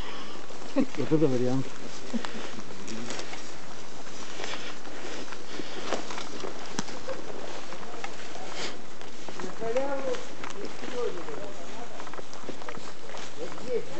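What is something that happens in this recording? Footsteps swish and crunch through undergrowth.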